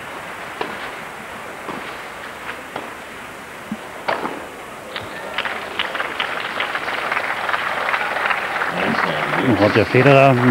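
A crowd applauds in an open-air stadium.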